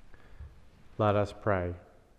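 A man speaks into a microphone, reading out calmly.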